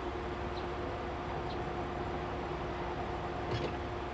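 A van's sliding door rolls open.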